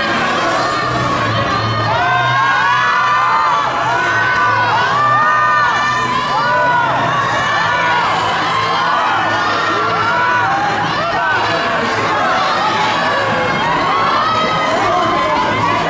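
A crowd of young women screams and shrieks excitedly all around.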